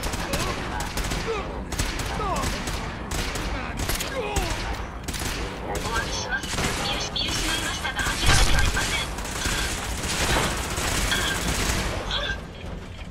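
Laser guns fire in rapid, repeated bursts.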